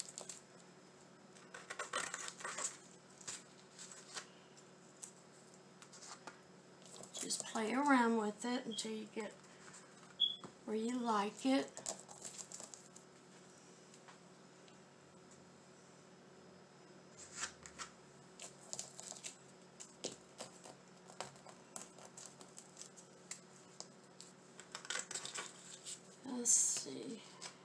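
Paper rustles and crinkles as stickers are peeled and pressed down.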